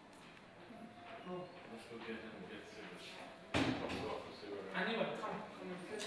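Footsteps approach across a hard floor.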